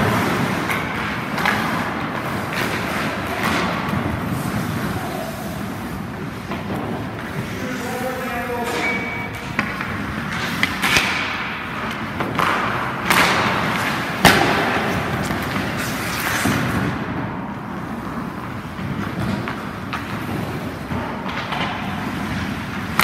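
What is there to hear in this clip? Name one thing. Ice skates carve and scrape across an ice rink close by.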